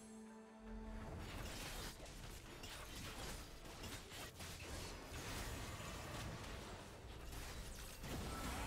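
Fantasy battle sound effects clash, zap and burst in quick succession.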